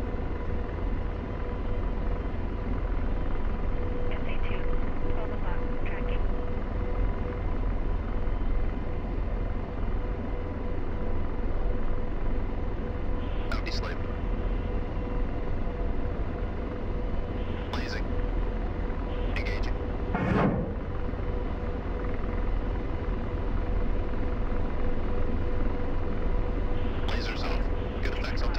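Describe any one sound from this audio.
A helicopter's engine and rotor drone steadily from inside the cockpit.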